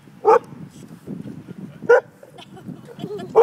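A young woman talks softly to a dog.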